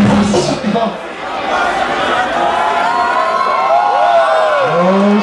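A man raps loudly into a microphone over loudspeakers.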